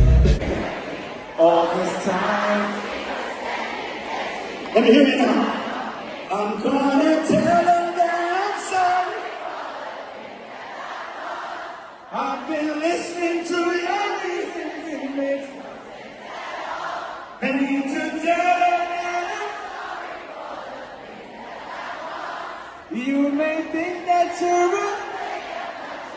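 A large crowd sings along loudly.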